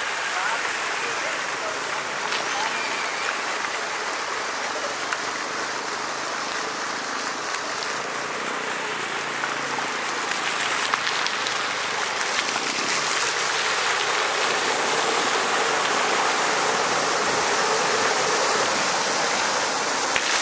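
A fountain splashes steadily nearby.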